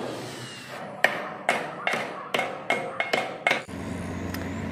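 A hammer strikes metal in quick, sharp blows.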